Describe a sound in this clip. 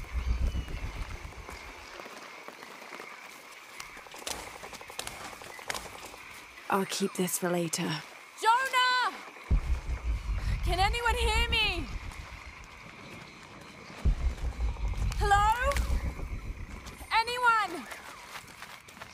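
Footsteps rustle through dense, leafy undergrowth.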